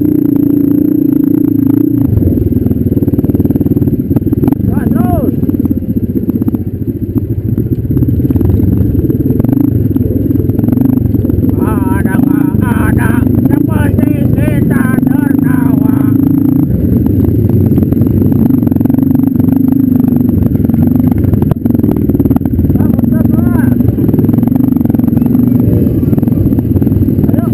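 A dirt bike engine drones loudly up close, rising and falling as it is throttled.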